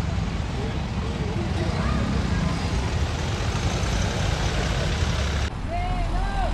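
A vehicle engine idles nearby.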